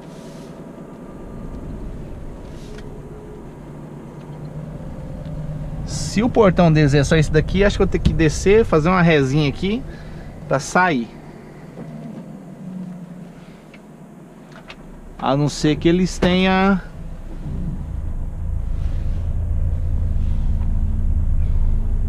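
A truck's diesel engine rumbles and grows louder as it pulls away.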